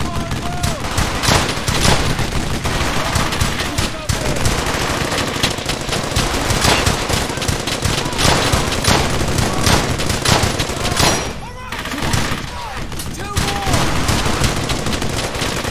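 Gunfire cracks and booms loudly in bursts all around.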